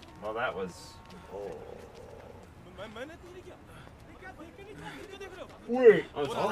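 Young men talk and laugh close to microphones.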